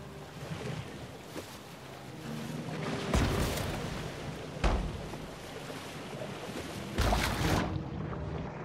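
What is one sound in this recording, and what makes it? Water splashes and sloshes as a shark swims through it.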